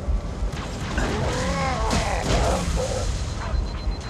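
A creature lets out a loud, warbling roar.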